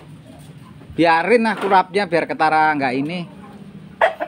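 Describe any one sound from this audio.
A rooster crows loudly and close by.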